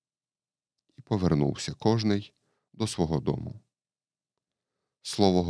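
A man reads aloud calmly into a microphone.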